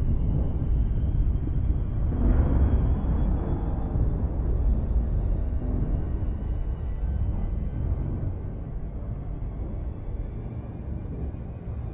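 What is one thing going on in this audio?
A spaceship engine rumbles low and steady, slowly growing quieter.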